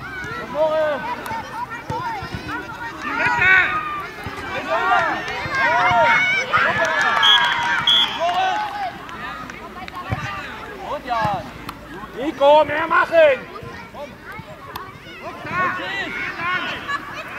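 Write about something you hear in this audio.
Young children shout and call out excitedly across an open outdoor field.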